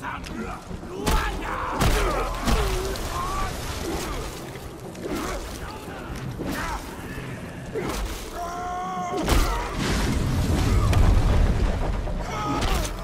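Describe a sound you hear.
A heavy club strikes with dull, thudding blows.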